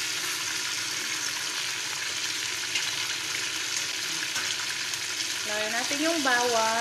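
Chicken sizzles in oil in a metal pot.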